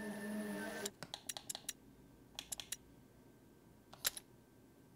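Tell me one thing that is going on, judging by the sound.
Soft menu clicks tick several times.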